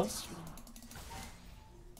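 Short clashing and clicking game effects sound in quick bursts.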